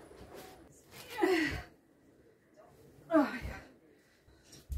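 A person shakes out a duvet with a whoosh.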